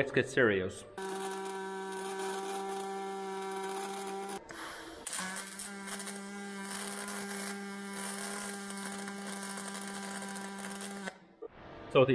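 An arc welder hisses and crackles steadily.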